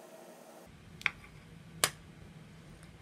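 A small metal disc clicks as it is set down on a hard table.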